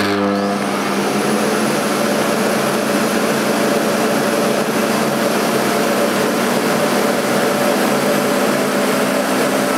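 A vacuum cleaner motor roars steadily.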